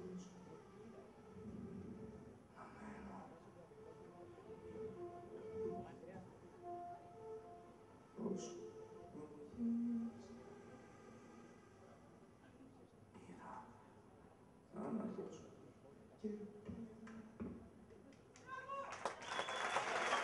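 A flute plays a slow melody in a room with echo.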